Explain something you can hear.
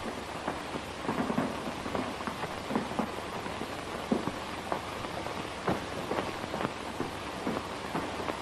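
Cloth rustles and dishes clink quietly.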